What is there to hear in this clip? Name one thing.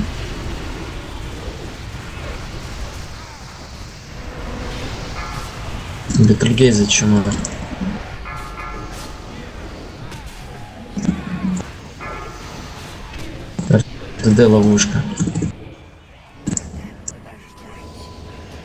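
Magic spells crackle and whoosh amid a fantasy battle.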